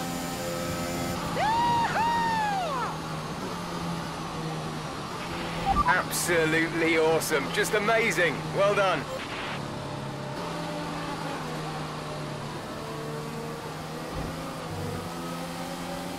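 A racing car engine hums steadily at speed.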